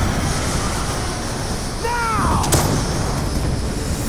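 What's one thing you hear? An aircraft's engines roar overhead.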